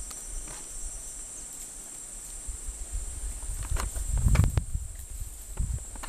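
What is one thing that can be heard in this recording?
A monkey's feet rustle dry leaves as it walks.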